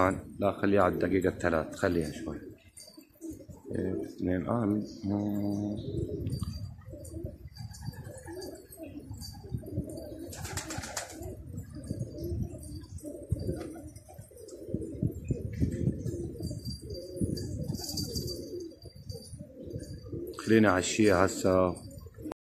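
Pigeons coo softly and steadily close by.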